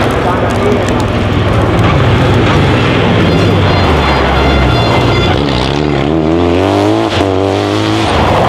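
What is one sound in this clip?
A rally car engine roars loudly, revving up and down as the car speeds past.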